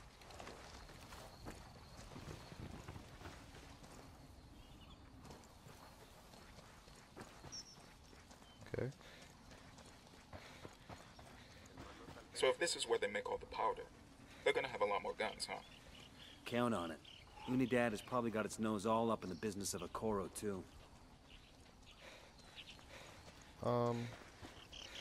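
Footsteps crunch softly on dirt and gravel.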